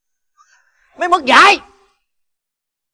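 A young man screams out in anguish.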